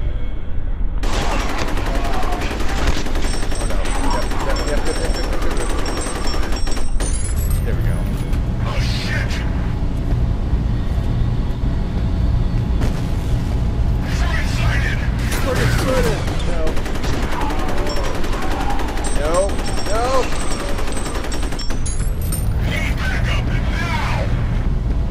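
An automatic rifle fires bursts of gunshots.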